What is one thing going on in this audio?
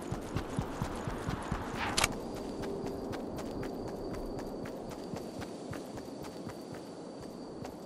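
Footsteps patter quickly on grass as a game character runs.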